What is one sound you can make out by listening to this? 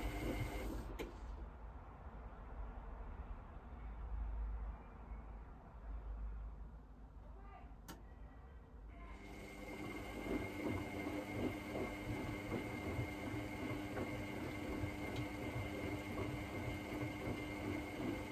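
A washing machine drum turns with a low steady rumble.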